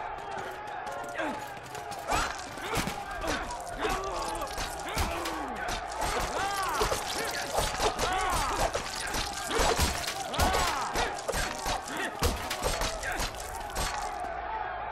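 Fists thud in a brawl.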